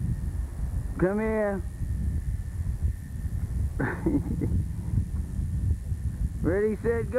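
A toddler calls out in a high voice outdoors.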